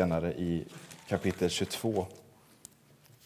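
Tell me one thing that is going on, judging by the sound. A man speaks calmly into a microphone, reading aloud.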